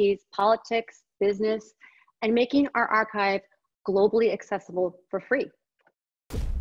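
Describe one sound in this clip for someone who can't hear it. A woman speaks calmly and clearly, close to a microphone.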